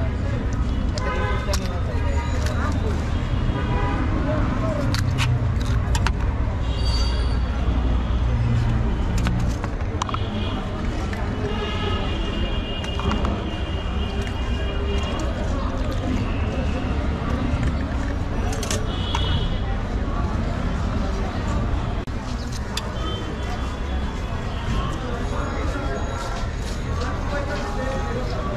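A busy street crowd murmurs and chatters outdoors.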